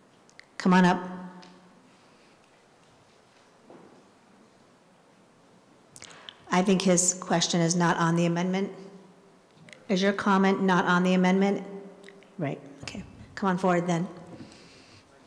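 A woman speaks calmly through a microphone, pausing between phrases.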